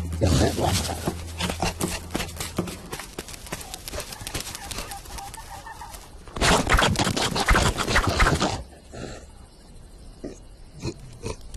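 A cartoon lion growls and gasps with a gruff voice.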